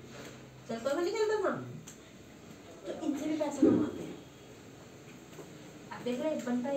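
A young woman speaks nearby in a calm, explaining voice, with pauses.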